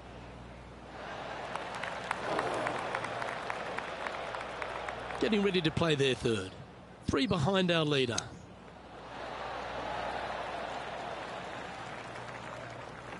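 A crowd cheers and applauds outdoors.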